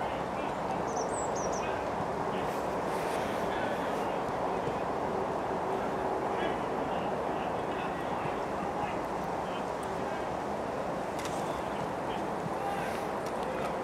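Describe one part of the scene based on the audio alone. A football is kicked back and forth with dull thuds.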